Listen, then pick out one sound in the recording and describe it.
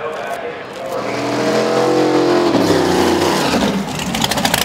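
A drag racing car revs hard while spinning its tyres.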